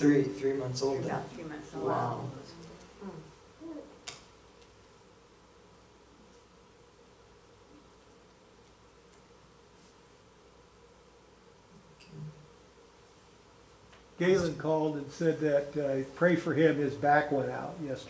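A young man speaks calmly in a room with a slight echo.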